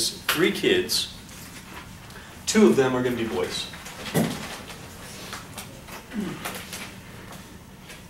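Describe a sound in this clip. A man speaks calmly, close by.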